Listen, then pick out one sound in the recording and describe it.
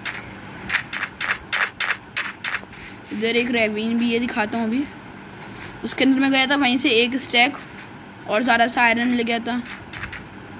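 Footsteps crunch on sand and grass.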